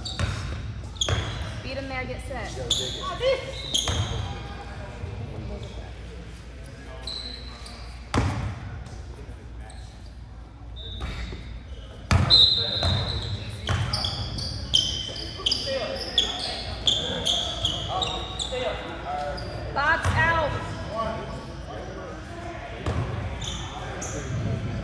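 A basketball bounces on a hard floor in an echoing gym.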